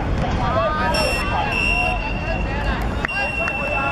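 A referee blows a whistle with a long shrill blast.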